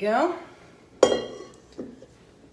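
A metal bowl clanks down on a hard counter.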